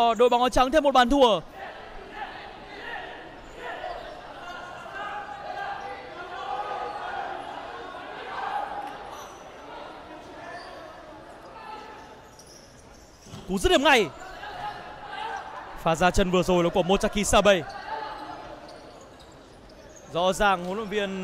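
Shoes squeak on a hard indoor court.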